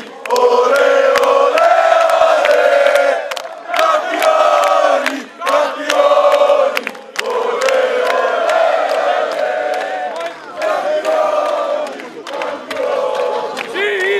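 Fans clap their hands.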